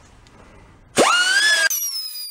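An air-powered cutting tool whirs up to speed with a rising whine.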